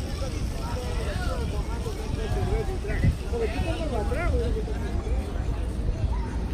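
People chat at a distance.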